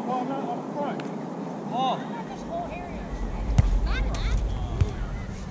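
A volleyball is struck with a dull thump.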